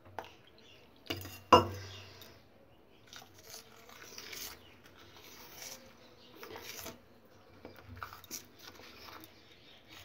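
A spoon stirs a thick, wet mixture with soft squelching.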